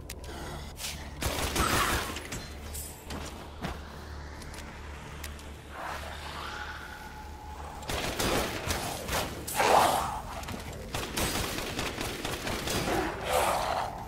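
Monsters growl and shriek.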